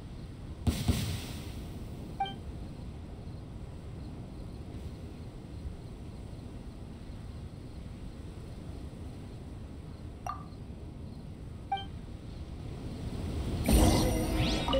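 A magical burst crackles and whooshes.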